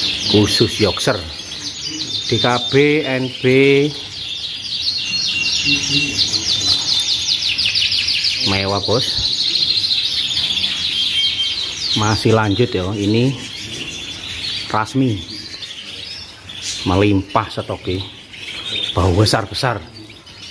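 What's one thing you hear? Many canaries sing in rapid, trilling chirps close by.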